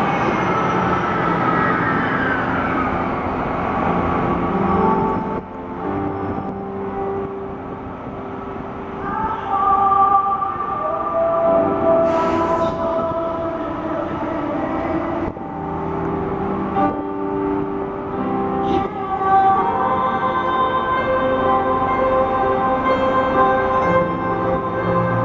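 A young man sings a slow ballad into a microphone, heard through loudspeakers outdoors.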